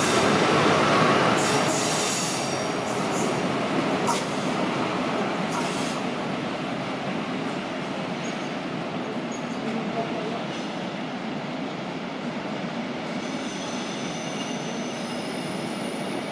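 A train rumbles away along the tracks and slowly fades.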